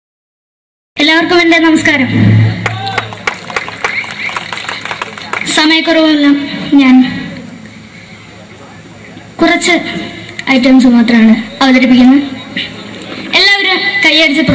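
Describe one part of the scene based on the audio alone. A boy sings loudly into a microphone through loudspeakers.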